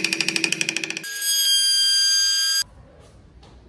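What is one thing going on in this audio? A small electric router whines at high speed.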